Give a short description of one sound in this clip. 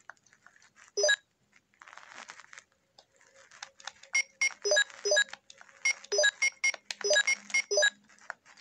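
Short electronic beeps chime as a menu selection moves.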